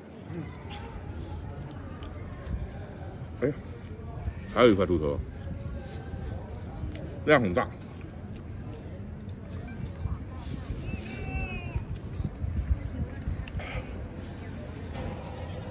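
A young man slurps noodles.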